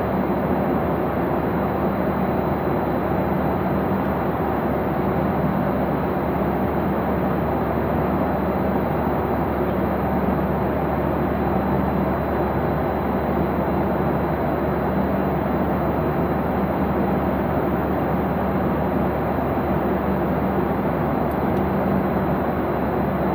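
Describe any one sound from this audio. A jet engine roars steadily, heard from inside an aircraft cabin.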